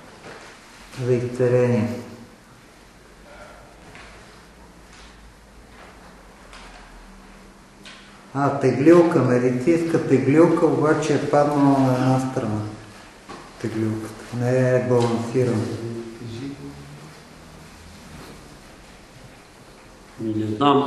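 A man reads aloud in an echoing room, pausing between phrases.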